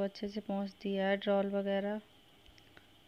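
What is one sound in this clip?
A woman speaks loudly close by in drawn-out tones.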